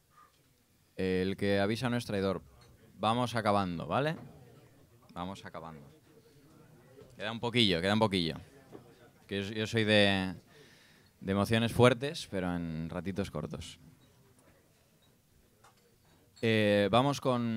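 A saxophone plays short phrases up close.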